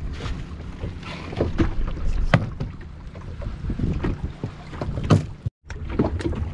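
Water splashes and laps against a small boat.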